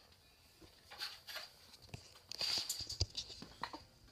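A metal tape measure rattles as it is pulled out and snaps back.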